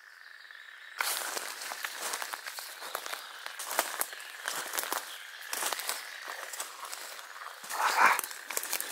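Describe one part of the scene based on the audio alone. Footsteps crunch through dry leaves on the forest floor.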